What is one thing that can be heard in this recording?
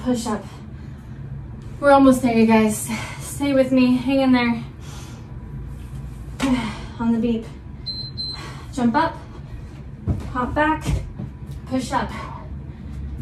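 A woman talks with animation, close by.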